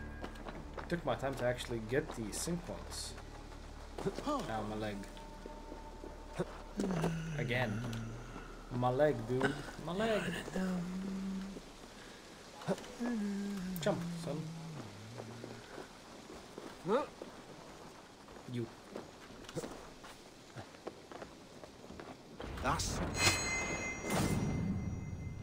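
Footsteps patter softly on the ground.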